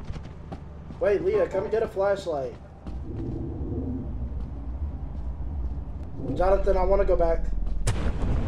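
A young man talks close to a microphone, casually.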